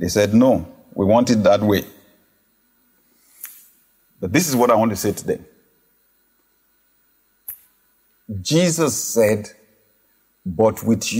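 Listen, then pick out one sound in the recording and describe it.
A man speaks emphatically into a close microphone, in short phrases with pauses.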